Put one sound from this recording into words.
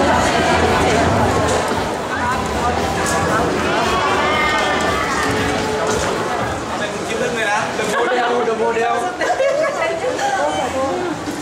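A crowd of people chatters in a busy, echoing hall.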